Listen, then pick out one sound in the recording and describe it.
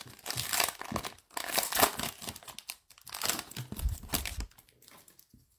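A foil trading card wrapper crinkles and tears open.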